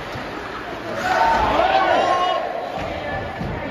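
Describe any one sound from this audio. Spectators cheer and shout in a large echoing arena.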